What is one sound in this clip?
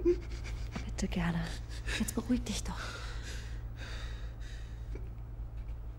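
A woman speaks softly and soothingly.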